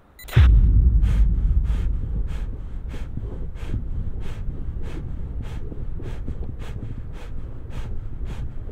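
A runner's footsteps pound quickly on a running track.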